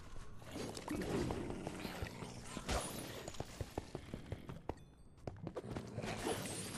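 Blades strike and thud against monsters in quick, repeated blows.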